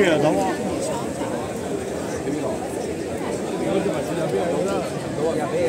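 A large crowd of people talks and chatters outdoors.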